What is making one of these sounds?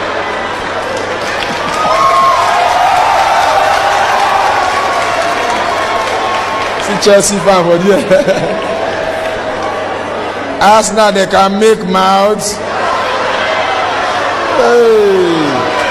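A crowd laughs loudly in a large room.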